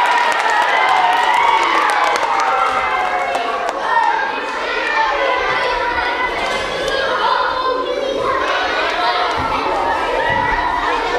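Young voices sing together with animation.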